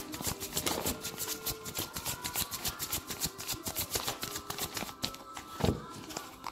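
A leather wallet rustles and creaks as hands handle it close by.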